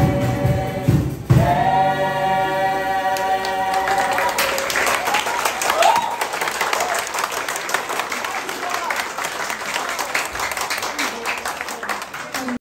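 Music plays loudly over loudspeakers in a large hall.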